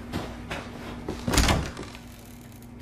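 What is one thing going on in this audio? A wooden door is pushed open with a loud bang.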